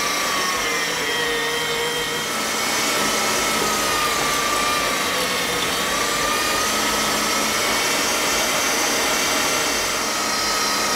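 An electric meat grinder whirs steadily with a high motor whine.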